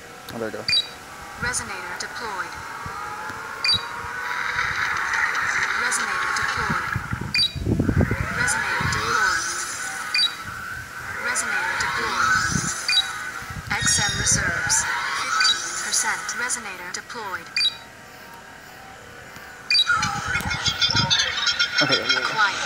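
Electronic game chimes and whooshing effects sound again and again.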